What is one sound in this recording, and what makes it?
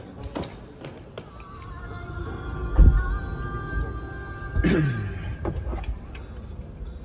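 A vehicle engine hums low and steady from inside.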